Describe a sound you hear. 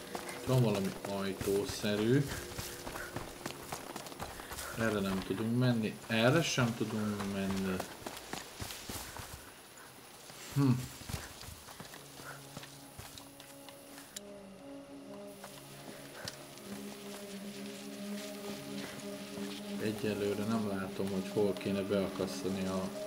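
A middle-aged man talks with animation into a close microphone.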